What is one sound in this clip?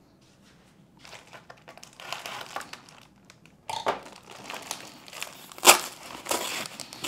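Small objects clatter and rustle as a man handles them.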